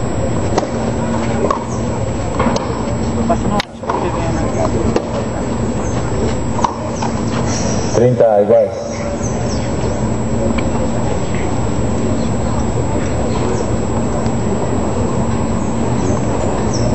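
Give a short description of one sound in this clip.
Tennis balls are struck with sharp pops during a rally.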